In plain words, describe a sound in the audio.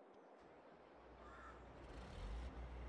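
A harvester engine rumbles low and steady.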